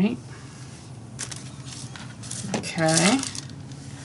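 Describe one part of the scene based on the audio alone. A plastic stencil crinkles as it is peeled off paper.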